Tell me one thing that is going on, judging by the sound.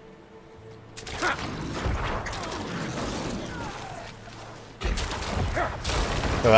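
Loud clashing battle noises and blasts burst out.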